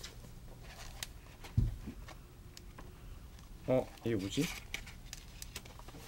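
Pages of a book rustle as they are flipped.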